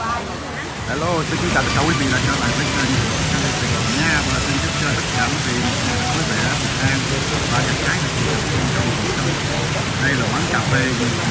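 A waterfall splashes and rushes steadily close by.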